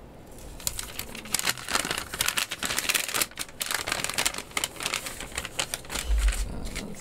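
Paper packets rustle and crinkle as they are handled.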